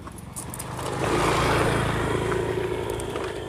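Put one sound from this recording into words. Another motorbike rides past.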